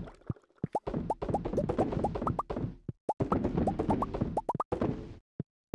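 Quick rising pops sound again and again as items are picked up in a game.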